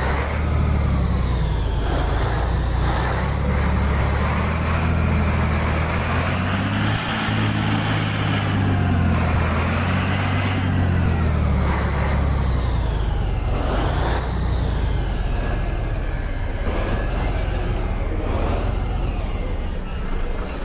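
A truck engine rumbles steadily while reversing slowly.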